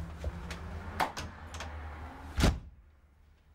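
A door handle clicks and a door opens.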